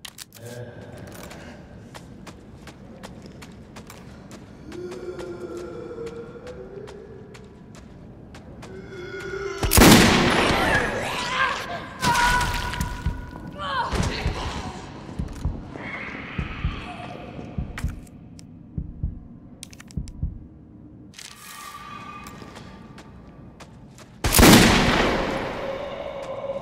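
A zombie groans and snarls.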